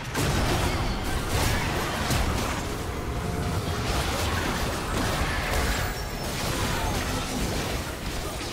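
Spell effects and attacks crackle and burst in a busy game battle.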